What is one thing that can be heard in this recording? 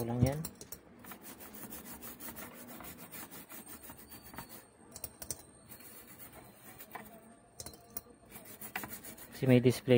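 A stiff brush scrubs a circuit board.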